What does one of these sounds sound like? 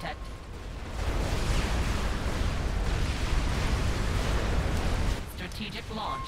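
Explosions rumble and boom in a battle.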